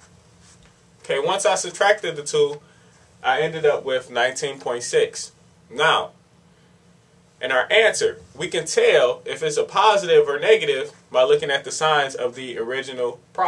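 A young man speaks calmly to the listener close by.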